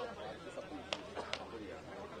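A cricket ball hits a bat with a sharp crack.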